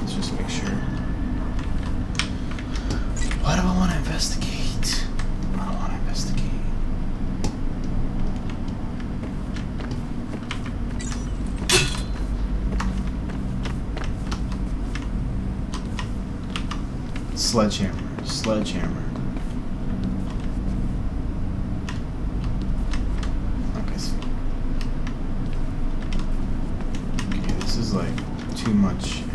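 Footsteps tread slowly across a hard floor.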